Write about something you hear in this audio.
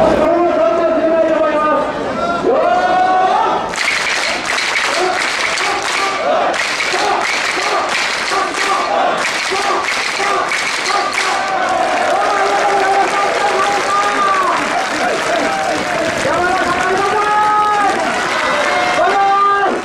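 A large crowd of men chants loudly in unison outdoors.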